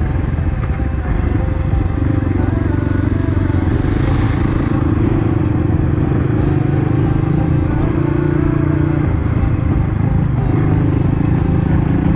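A dirt bike engine hums close by, rising and falling in pitch.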